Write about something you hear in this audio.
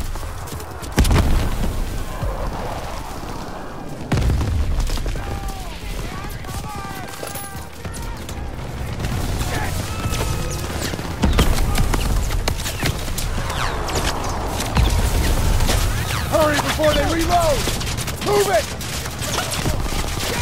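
Explosions boom heavily, again and again.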